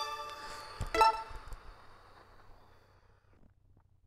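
A bright electronic chime rings out and slowly fades.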